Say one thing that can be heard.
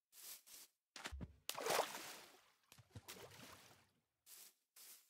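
Water splashes as something wades through it.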